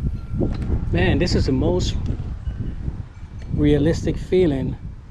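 A man speaks calmly up close.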